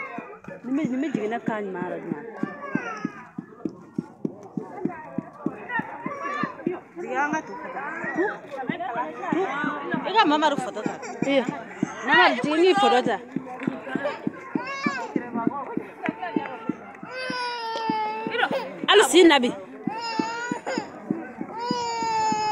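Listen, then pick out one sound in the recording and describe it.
Wooden pestles thump rhythmically in a mortar.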